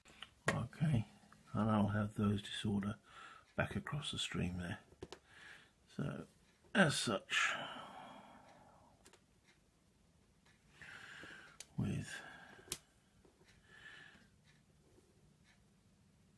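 Small game pieces click softly as a hand slides them across a board.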